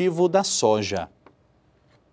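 A man speaks briefly and clearly, close by.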